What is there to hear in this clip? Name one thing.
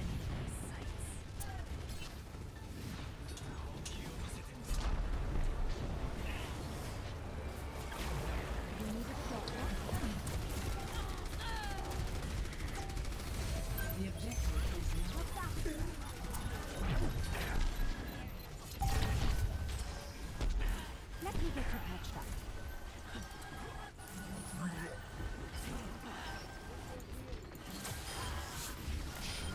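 Game weapons fire with rapid electronic zaps and bursts.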